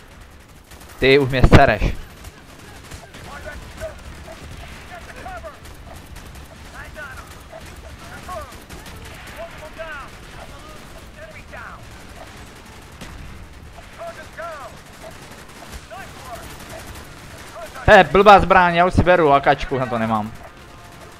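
A rifle fires short bursts of shots up close.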